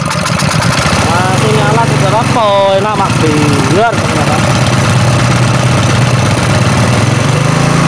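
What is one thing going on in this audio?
A small petrol engine runs with a steady, rattling drone close by.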